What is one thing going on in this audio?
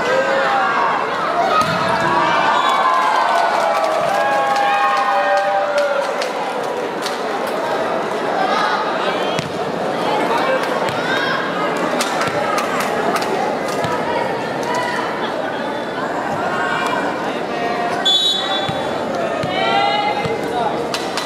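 A crowd of spectators cheers and chatters in a large echoing hall.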